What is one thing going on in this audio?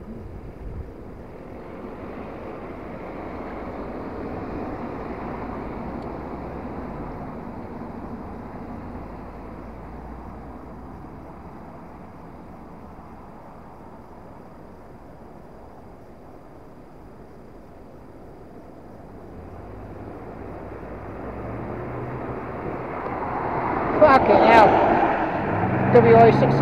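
Traffic passes by on a road outdoors.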